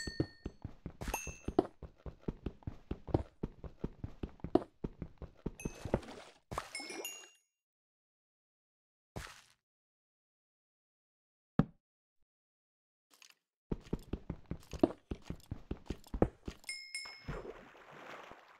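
A pickaxe chips rapidly at stone blocks.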